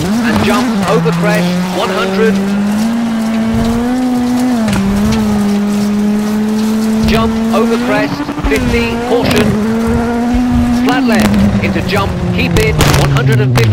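A rally car engine roars at high revs and shifts gears.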